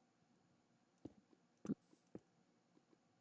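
Stone blocks are placed with dull knocks.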